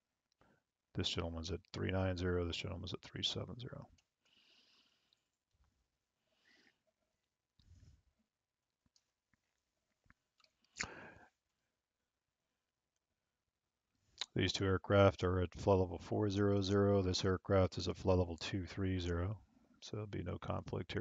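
A young man speaks calmly into a close headset microphone.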